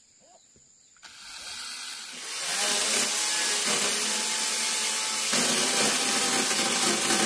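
A chainsaw roars loudly as it cuts through bamboo.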